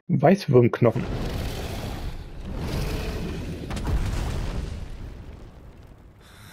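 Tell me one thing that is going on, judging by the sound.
Heavy rumbling and whooshing swell and fade.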